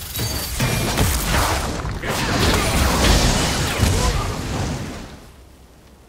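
Fiery magic blasts and clashing combat effects roar and crackle.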